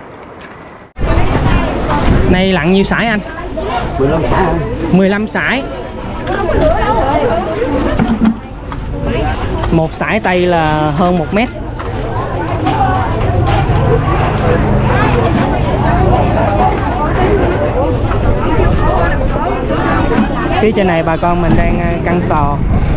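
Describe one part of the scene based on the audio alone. A crowd of women and men chatter and call out loudly close by.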